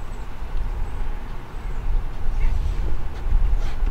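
A cricket bat strikes a ball with a sharp knock.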